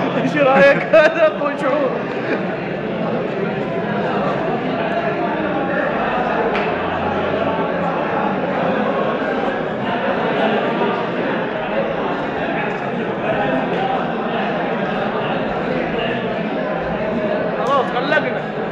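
Many men chatter and talk at once in a large echoing hall.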